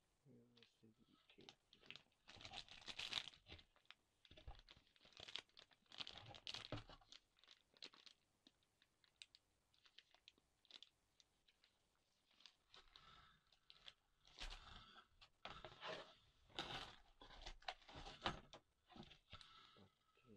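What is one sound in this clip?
Cardboard packaging rustles and scrapes as a box is handled.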